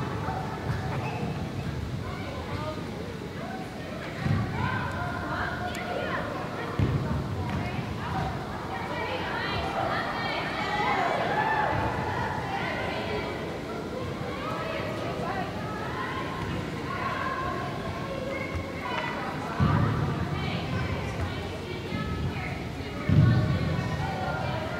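Young women shout and call out to each other across a large echoing indoor hall.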